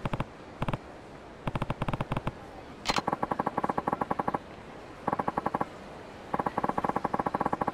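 Short electronic blips tick rapidly in quick bursts.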